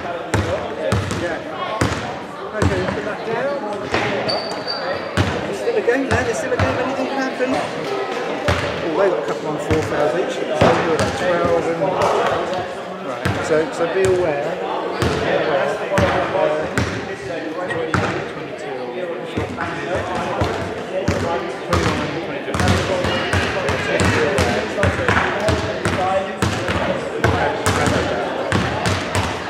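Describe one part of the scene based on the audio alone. A crowd of young people chatter and talk in a large echoing hall.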